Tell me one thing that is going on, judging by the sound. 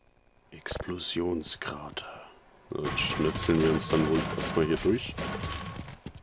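A crowbar strikes and smashes wooden planks.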